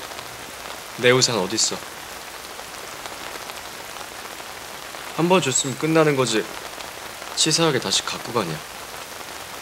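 A young man speaks in a low, tense voice, close by.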